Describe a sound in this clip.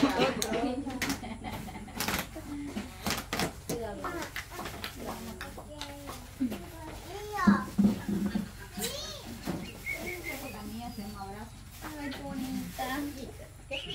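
Paper and plastic wrapping rustle as gifts are unwrapped.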